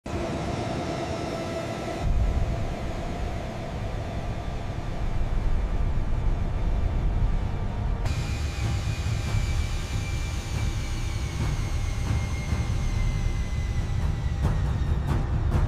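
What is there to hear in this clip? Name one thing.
A jet engine roars and whines steadily.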